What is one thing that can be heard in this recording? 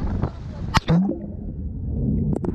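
Water bubbles and churns underwater.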